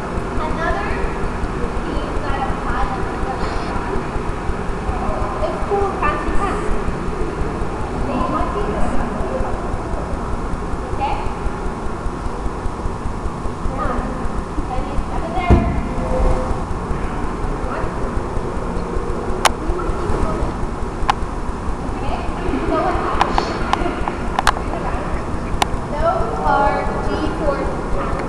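A man and a woman talk nearby in a room with an echo.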